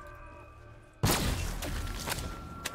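A loud electric blast crackles and booms.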